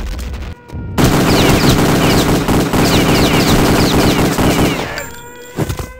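A submachine gun fires loud rapid bursts.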